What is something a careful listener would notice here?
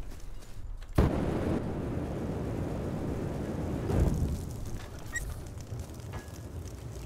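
A flamethrower roars steadily.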